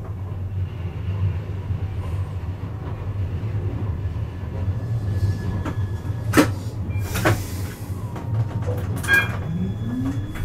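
Another tram rolls past close by.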